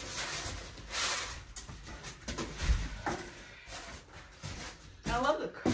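Cardboard and packing pieces rustle and knock.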